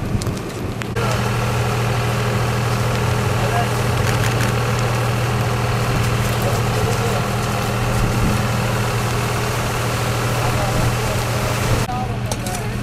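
Water sprays hard from a hose.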